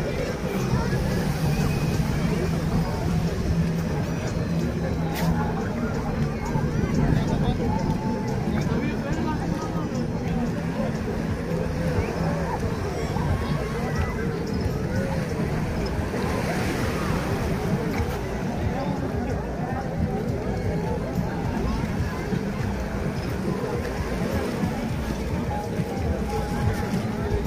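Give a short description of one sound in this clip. A crowd of adults and children chatter and call out nearby outdoors.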